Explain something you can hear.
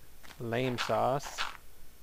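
Dirt blocks crunch as a shovel digs them out.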